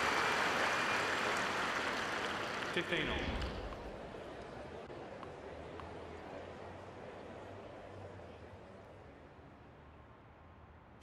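A large crowd applauds and slowly fades away.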